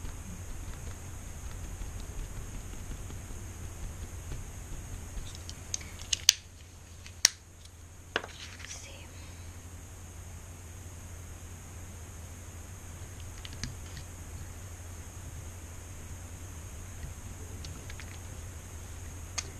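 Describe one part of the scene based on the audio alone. A rubber stamp presses and rubs on paper.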